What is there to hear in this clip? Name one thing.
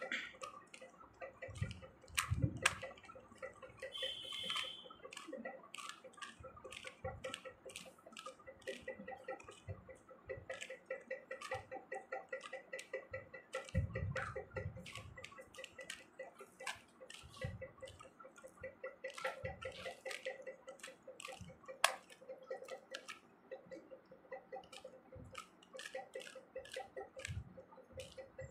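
Plastic puzzle pieces click and clack as hands twist a cube quickly.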